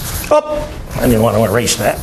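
A board eraser rubs across a blackboard.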